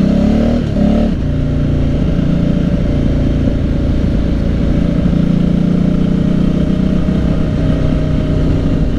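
A motorcycle engine roars loudly up close, shifting pitch as it changes gears.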